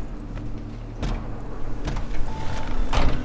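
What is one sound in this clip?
A car door opens and thuds shut.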